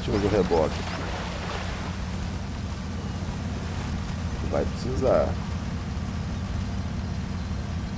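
Truck tyres splash through mud and water.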